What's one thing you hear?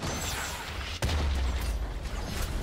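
A large structure explodes with a deep boom.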